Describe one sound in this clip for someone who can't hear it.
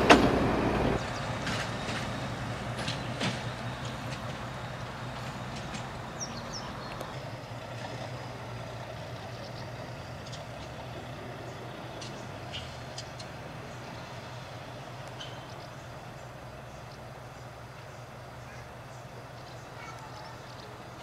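A diesel locomotive hums steadily in the distance and slowly fades.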